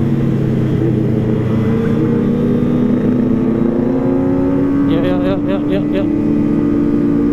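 Wind rushes past a moving rider.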